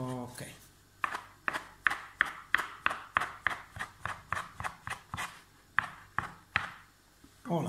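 A dough scraper taps sharply and rhythmically on a wooden board.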